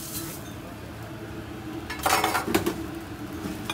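A metal spatula scrapes across a hot griddle.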